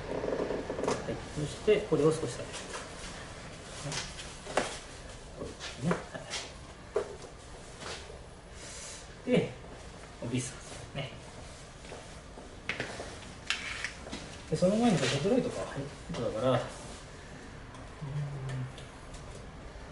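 Plastic wrapping crinkles and rustles up close as it is handled.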